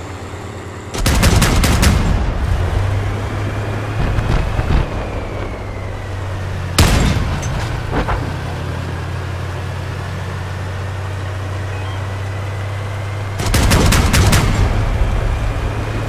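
A gun fires in short rapid bursts.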